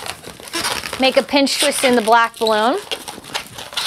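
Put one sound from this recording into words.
Rubber balloons squeak loudly as they are twisted.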